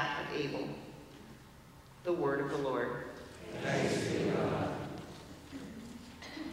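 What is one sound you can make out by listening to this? A woman reads aloud calmly through a microphone in a large echoing hall.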